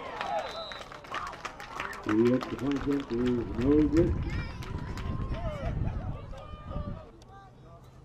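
A group of young players shouts loudly together outdoors.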